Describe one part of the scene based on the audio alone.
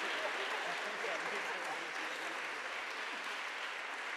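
A group of adults laughs together nearby.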